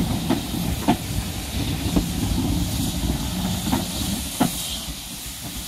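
Train wheels clack sharply over rail joints.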